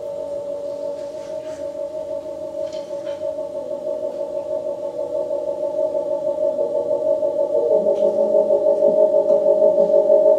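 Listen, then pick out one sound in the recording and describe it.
Light metallic taps and scrapes sound on a drum kit.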